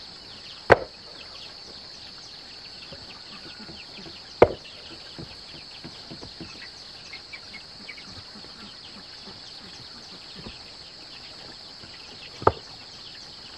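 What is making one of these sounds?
Flat stones knock and clack against each other as they are set down.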